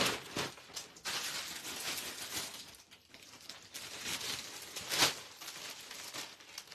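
Plastic wrapping and cloth rustle close by.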